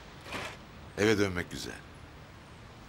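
A middle-aged man speaks quietly nearby.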